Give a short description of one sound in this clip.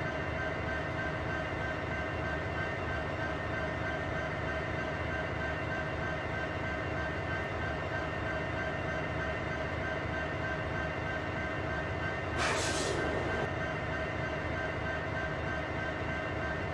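A locomotive engine drones with a steady hum.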